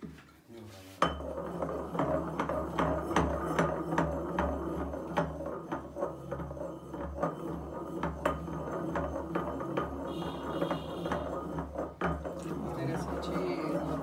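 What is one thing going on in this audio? A wooden pestle thumps rhythmically in a ceramic mortar.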